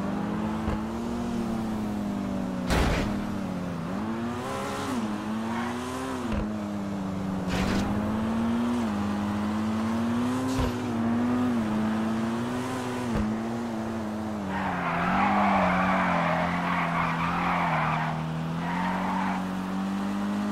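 A racing car engine roars steadily, its pitch rising and falling with gear changes.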